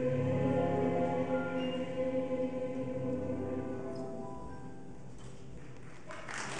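A large choir sings in a hall, its last chord ringing out.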